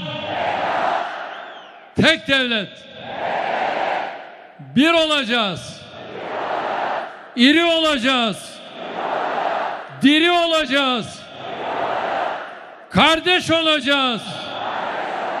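A large crowd cheers and roars between the chants.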